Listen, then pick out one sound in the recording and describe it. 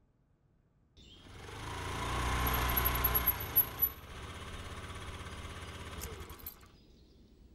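A scooter engine hums as the scooter rolls up and stops.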